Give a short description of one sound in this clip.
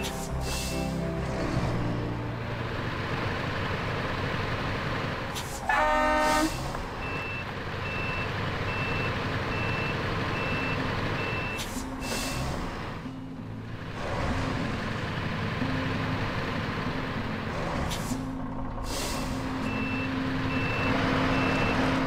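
A heavy truck engine rumbles and idles.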